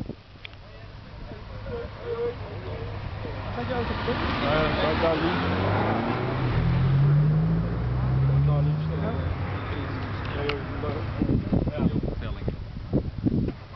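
Several men talk calmly nearby outdoors.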